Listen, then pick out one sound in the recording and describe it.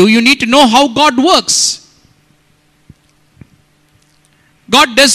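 A man preaches with animation into a microphone.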